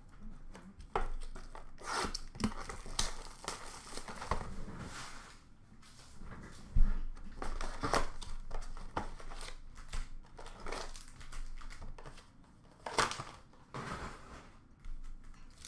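Cardboard packs and cards rustle and tap as a hand handles them.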